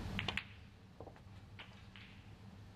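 Snooker balls knock together on the table.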